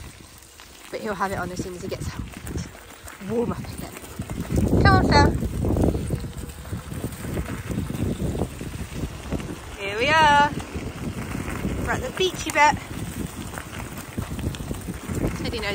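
Paws patter on gravel.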